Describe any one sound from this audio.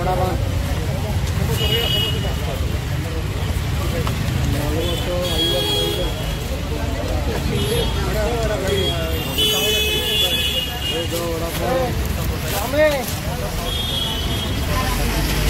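Men talk nearby over street noise.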